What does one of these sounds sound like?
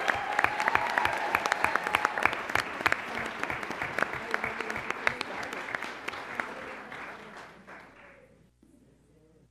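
A large crowd applauds and cheers loudly, then fades away.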